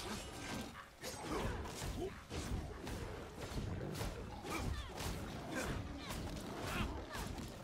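Fiery bursts whoosh and crackle.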